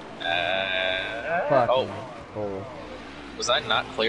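Tyres screech as a race car spins out.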